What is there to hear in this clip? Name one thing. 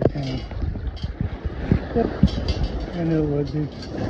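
Sand and shells rattle in a metal scoop.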